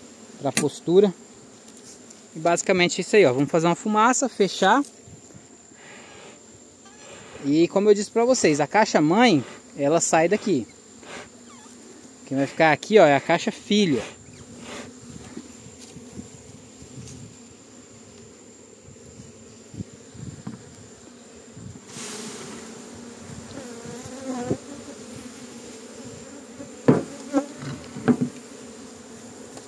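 Many bees buzz in a low, steady hum.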